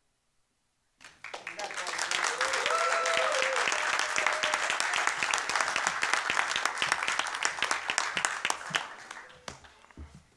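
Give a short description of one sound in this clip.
A room full of people applauds loudly.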